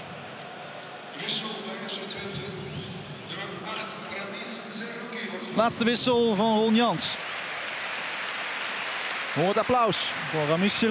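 A large stadium crowd murmurs and cheers in the open air.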